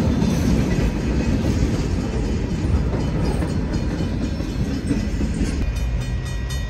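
Train wagons rumble and clatter heavily over a bridge close by.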